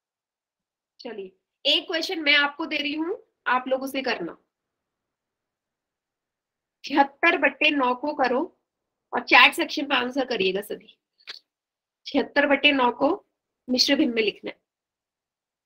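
A young woman speaks calmly into a close microphone, explaining in short phrases.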